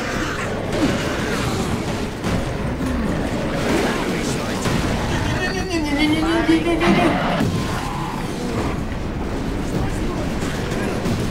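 Guns fire and blades clash in a chaotic fight.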